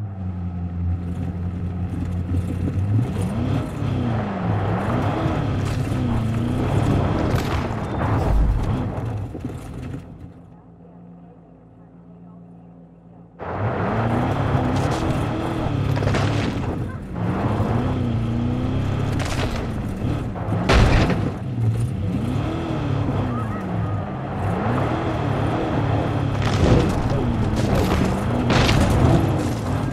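Tyres crunch over dirt and brush.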